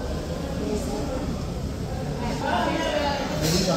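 A knife and fork scrape against a plate.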